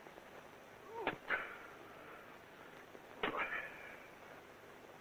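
A man cries out and groans in distress.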